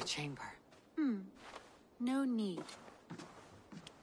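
A second woman answers softly.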